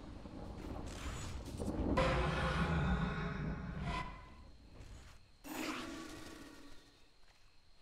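Game sound effects chime and rumble.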